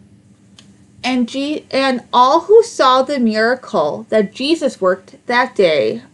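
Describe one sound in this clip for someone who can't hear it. A woman reads aloud with expression, close to the microphone.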